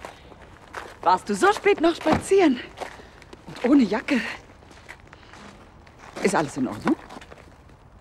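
Another woman answers calmly, close by.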